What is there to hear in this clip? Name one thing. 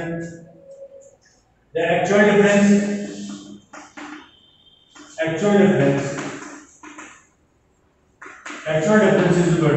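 A young man speaks clearly and steadily, close to a microphone, as if explaining.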